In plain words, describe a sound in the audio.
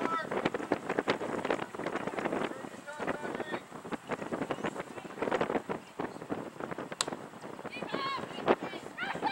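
Nearby spectators talk and shout outdoors.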